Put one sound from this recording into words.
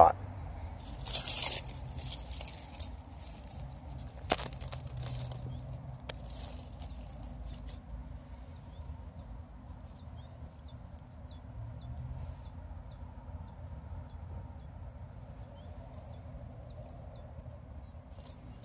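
Leaves rustle softly as a hand moves through plants.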